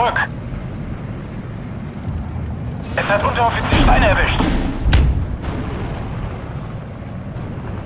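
Heavy guns fire with deep booms.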